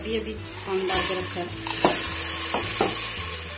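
Dry lentils pour and patter into a metal pot.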